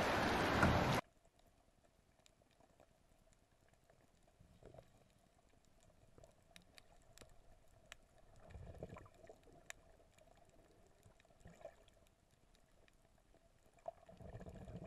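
Water murmurs faintly and muffled underwater.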